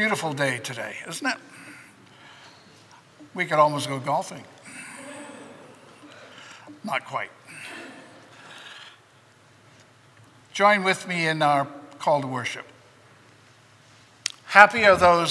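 An older man speaks calmly into a microphone in a room with a slight echo.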